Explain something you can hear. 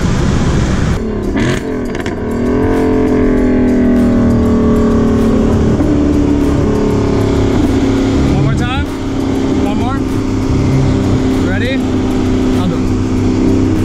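Engine revs rise and drop sharply with each gear change.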